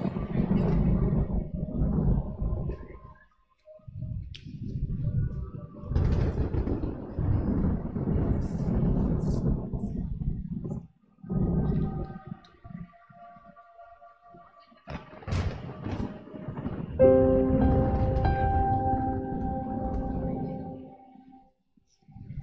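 An electric keyboard plays a tune.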